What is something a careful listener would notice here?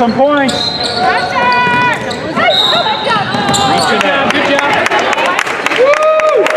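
Sneakers squeak sharply on a hardwood floor in an echoing gym.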